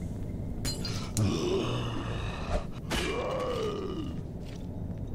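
Electric sparks fizz and crackle.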